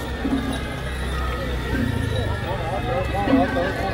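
A hand cart rattles as it is pushed along the road.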